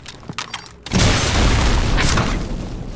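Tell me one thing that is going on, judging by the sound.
A heavy energy weapon fires with a loud, sustained roar.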